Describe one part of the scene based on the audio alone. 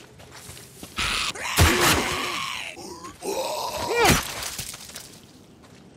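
A creature shrieks loudly in pain.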